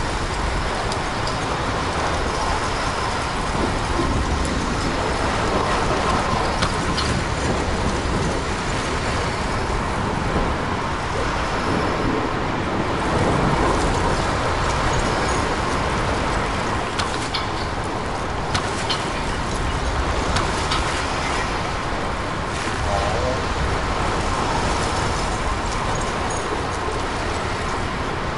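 Wind howls steadily outdoors.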